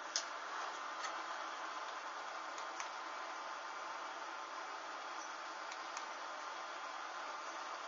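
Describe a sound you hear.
Burning fabric crackles and pops softly.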